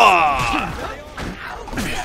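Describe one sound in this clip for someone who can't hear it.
A heavy melee blow thuds.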